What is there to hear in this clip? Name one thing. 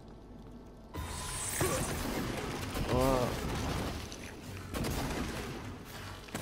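A weapon fires with loud crackling blasts.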